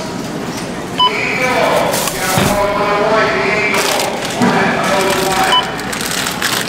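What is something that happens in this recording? A checkout scanner beeps.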